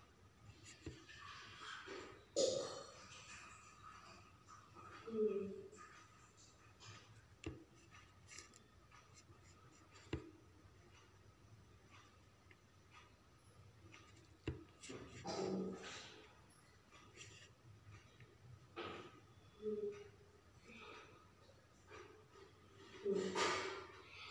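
Small stones tap softly as fingers press them onto a board.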